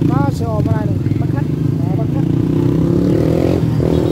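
A motorbike rides past on the road.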